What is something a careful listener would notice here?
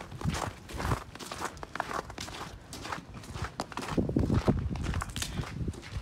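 Footsteps crunch on snowy ground.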